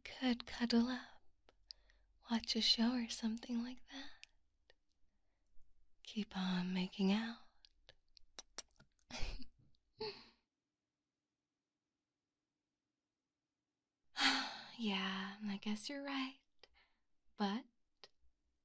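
A young man speaks softly and close to the microphone, with pauses.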